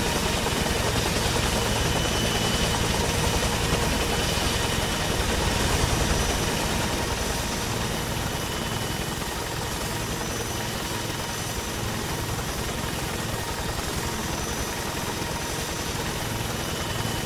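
A helicopter's rotor thumps loudly and steadily.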